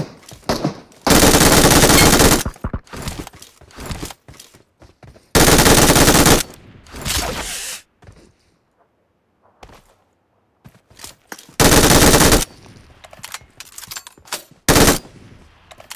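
A gun fires in loud rapid bursts.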